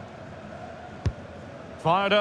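A football is struck with a thud.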